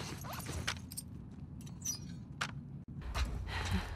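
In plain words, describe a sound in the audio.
A crossbow clicks and rattles as it is handled.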